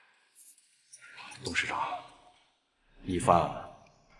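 A middle-aged man speaks with emotion.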